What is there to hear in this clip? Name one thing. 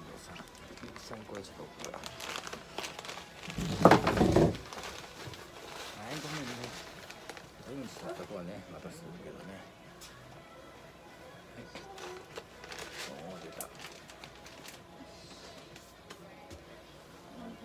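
Paper towels rustle.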